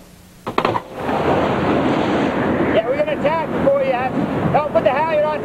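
Strong wind roars steadily outdoors at sea.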